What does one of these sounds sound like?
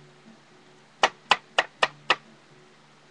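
A small plastic toy taps several times against a hard surface.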